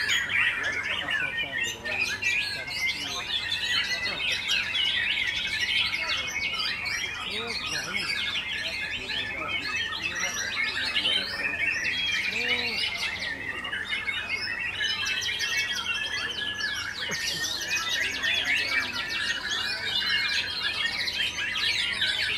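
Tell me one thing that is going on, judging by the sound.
Many caged songbirds chirp and sing busily all around, close by.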